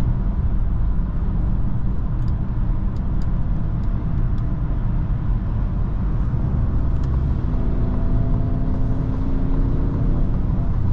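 Tyres roar on the road as the car drives fast.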